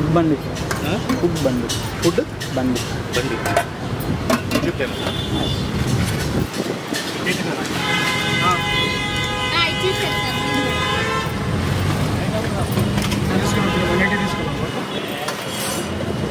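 Metal plates and lids clink and clatter.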